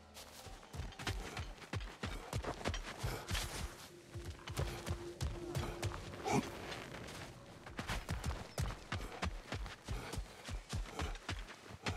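Heavy footsteps crunch steadily over gravel and rock.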